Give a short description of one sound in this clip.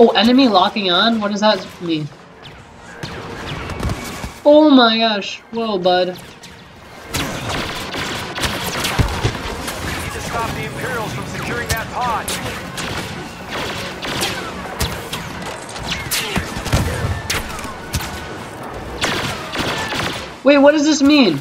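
Blaster rifles fire in rapid sharp bursts.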